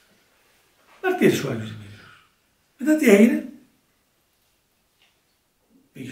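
An elderly man speaks slowly and solemnly, in short phrases with pauses.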